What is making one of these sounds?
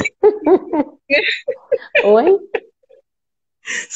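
A middle-aged woman laughs over an online call.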